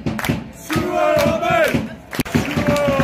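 A young man sings loudly close by.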